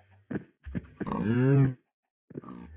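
A cow moos.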